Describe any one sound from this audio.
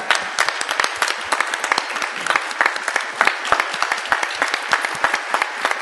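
A woman claps her hands briskly at close range.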